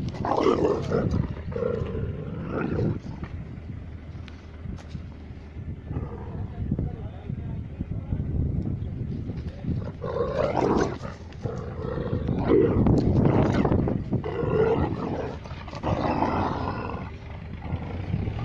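Dogs growl and whine playfully up close.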